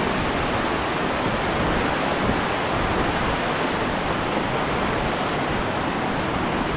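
A mountain stream rushes loudly over rocks close by.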